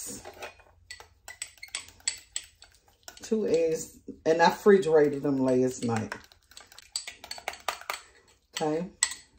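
A whisk clinks against a small glass bowl.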